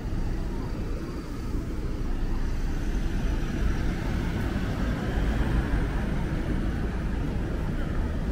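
Minibuses idle and pull away with a low engine hum.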